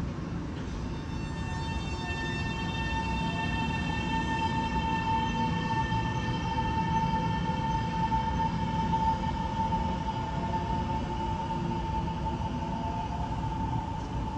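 An electric train pulls away with a rising motor whine.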